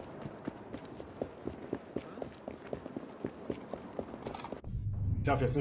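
Quick footsteps run on a hard street.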